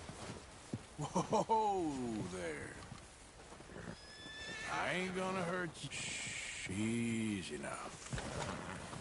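A man calls out softly in a low voice.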